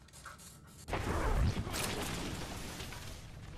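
A metal grate is wrenched loose and clatters down.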